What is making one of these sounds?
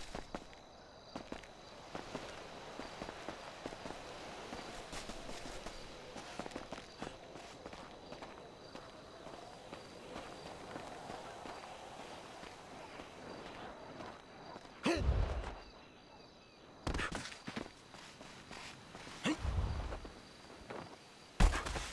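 Footsteps run quickly over grass and gravel.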